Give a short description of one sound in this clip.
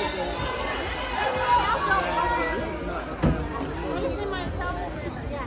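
A crowd of spectators chatters in a large echoing gym.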